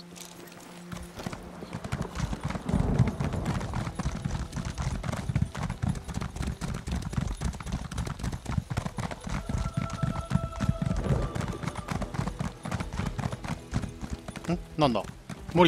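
A mount gallops with quick, thudding hoofbeats.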